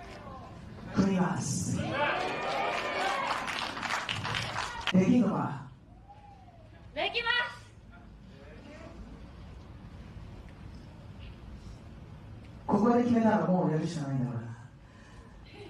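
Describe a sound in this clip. A woman speaks loudly into a microphone in a large echoing hall.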